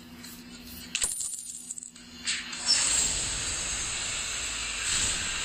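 Magical attack effects whoosh and crackle in a video game.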